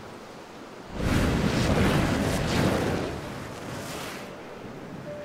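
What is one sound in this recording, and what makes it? A soft rushing swish plays while ground is painted over.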